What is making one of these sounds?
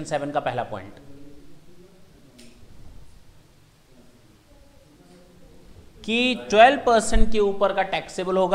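A man lectures calmly and clearly into a close microphone, with pauses.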